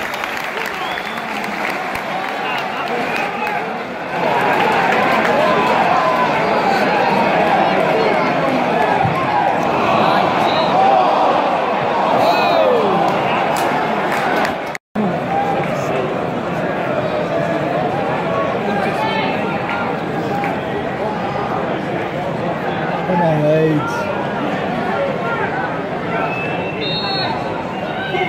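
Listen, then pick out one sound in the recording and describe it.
A large stadium crowd chants and sings loudly all around.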